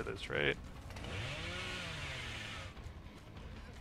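A chainsaw revs up briefly.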